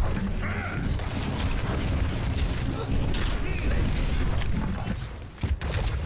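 Energy weapons fire in rapid, crackling bursts.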